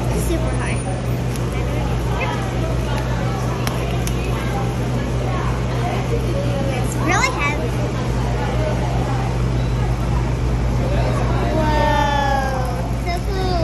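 A young girl talks excitedly up close.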